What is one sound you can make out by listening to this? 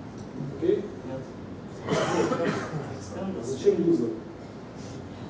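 A man speaks calmly to an audience in a room with a slight echo.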